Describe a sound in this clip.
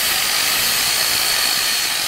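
An angle grinder's disc grinds against metal with a harsh hiss.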